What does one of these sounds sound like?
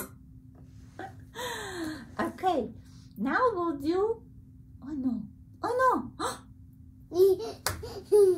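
An adult woman speaks warmly and with animation close by.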